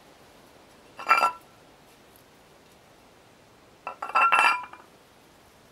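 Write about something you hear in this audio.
A plastic lid knocks and clatters against stone.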